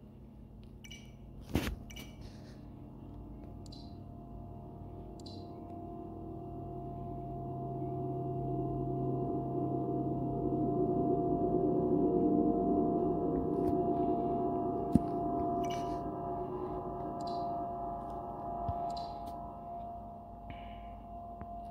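Game menu sounds beep and click softly.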